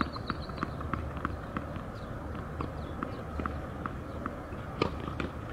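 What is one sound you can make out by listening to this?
A tennis ball bounces repeatedly on a hard court.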